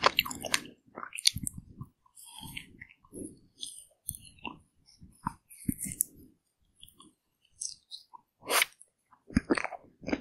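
Someone chews wet, sticky ice cream with smacking mouth sounds, close to the microphone.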